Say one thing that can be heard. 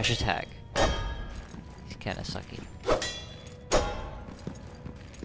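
Heavy sword swings whoosh and strike with ringing impacts.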